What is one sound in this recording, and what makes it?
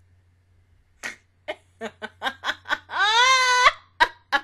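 A young woman laughs loudly close to a microphone.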